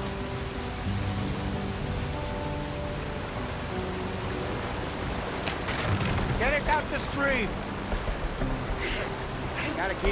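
Water splashes as a wagon fords a stream.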